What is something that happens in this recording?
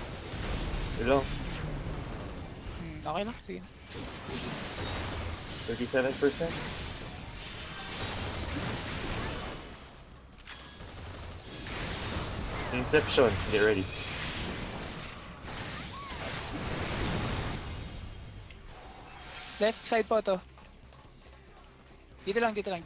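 Magic spells crackle and boom in bursts.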